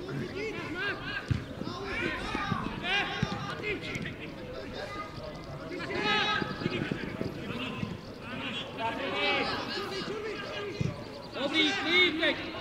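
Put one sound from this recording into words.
Men shout and call to each other across an open outdoor pitch.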